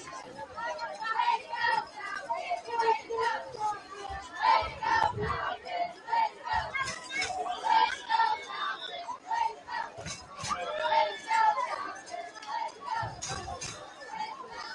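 Young men shout and cheer with excitement.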